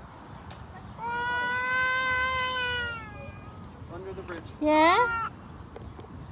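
A young child squeals in a high, sing-song voice close by.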